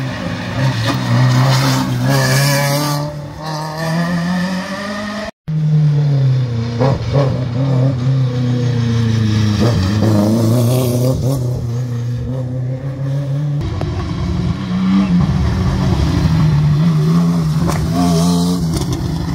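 Rally car engines roar past at close range, revving hard and shifting gears.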